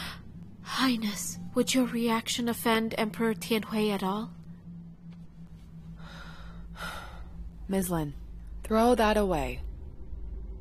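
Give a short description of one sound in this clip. A middle-aged woman speaks nearby in an urgent, pleading voice.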